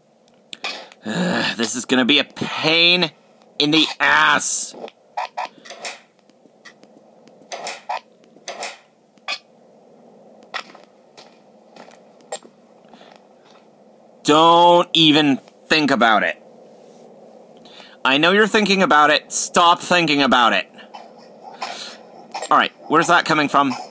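A computer game plays beeps and electronic effects through small laptop speakers.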